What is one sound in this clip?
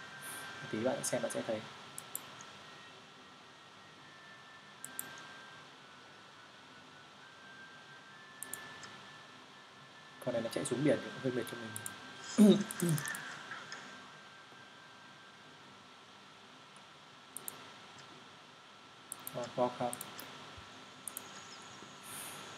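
Short interface clicks and chimes sound now and then.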